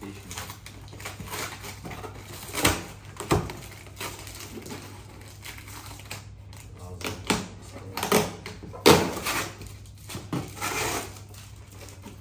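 Tape rips and scrapes across a cardboard box.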